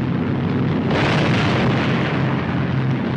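A flak shell bursts with a roar.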